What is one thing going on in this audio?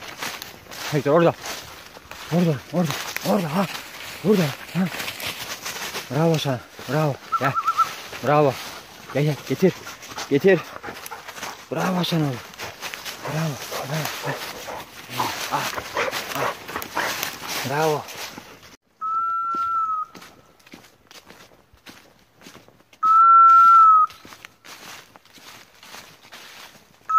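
Footsteps rustle through dry leaves.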